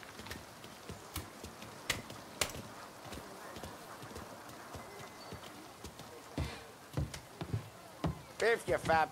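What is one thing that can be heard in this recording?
Footsteps clack on a stone pavement.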